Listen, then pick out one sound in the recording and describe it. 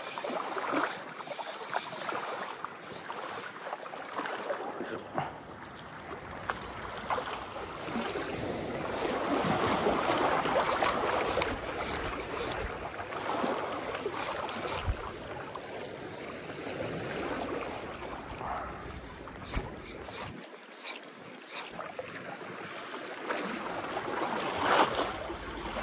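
Waves lap and splash nearby.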